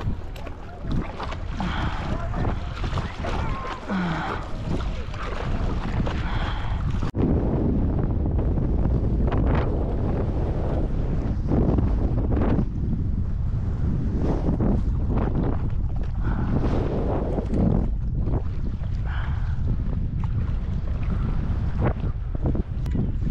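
Wind blows hard and rumbles across the microphone.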